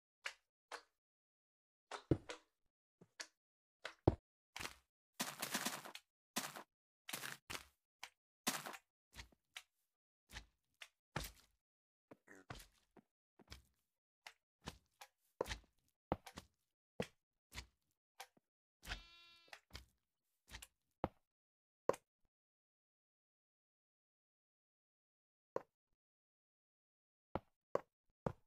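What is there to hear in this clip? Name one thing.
Blocks are placed and broken with short, soft clicks and thuds.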